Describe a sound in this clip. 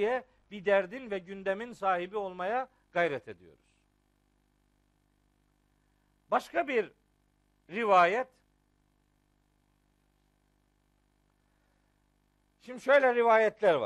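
A middle-aged man speaks with animation through a clip-on microphone, pausing between phrases.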